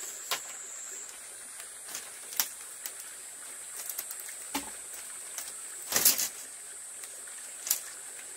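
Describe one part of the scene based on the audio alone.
Bamboo strips clatter and knock against each other.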